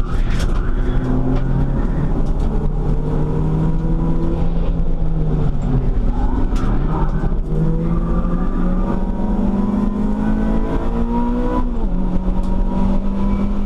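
Tyres rumble over the track surface.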